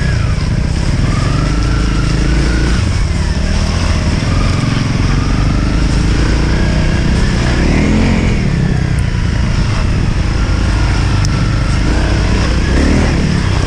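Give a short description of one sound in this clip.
A second dirt bike engine buzzes ahead.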